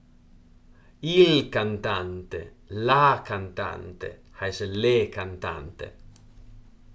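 A young man speaks calmly and clearly into a close microphone.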